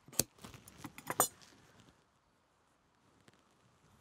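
Leather rustles and crinkles as it is folded by hand.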